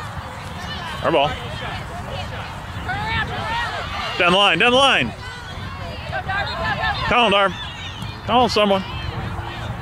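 Adult spectators shout encouragement loudly nearby, outdoors.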